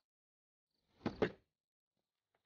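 Loose bricks thud and tumble onto dirt.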